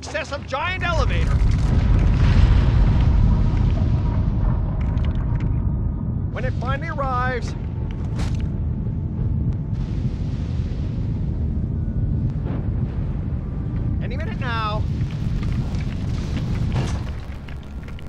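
A heavy elevator platform rumbles steadily as it moves, then stops.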